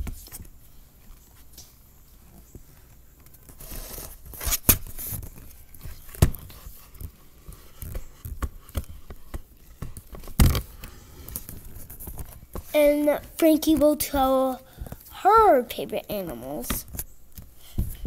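Knocks and bumps sound close by.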